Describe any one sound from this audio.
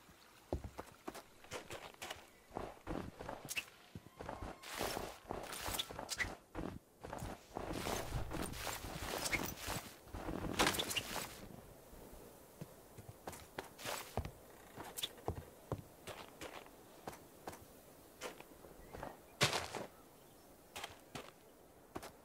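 Footsteps crunch steadily over snow and grass.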